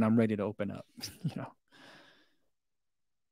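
A man laughs softly.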